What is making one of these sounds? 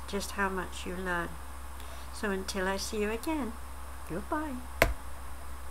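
A middle-aged woman speaks calmly and close to a microphone.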